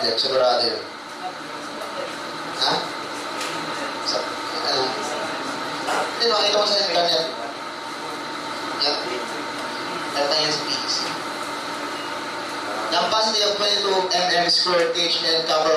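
A man lectures with animation, heard through a microphone.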